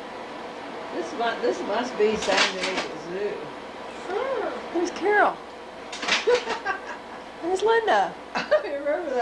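A monkey calls out with short, rising and falling cries.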